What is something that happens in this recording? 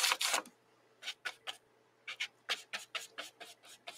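A brush clinks and swishes in a paint palette.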